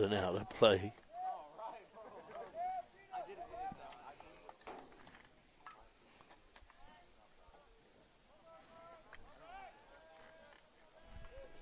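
Young men call out in the distance.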